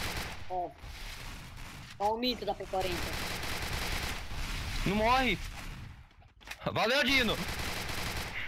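A man talks with animation into a microphone, close up.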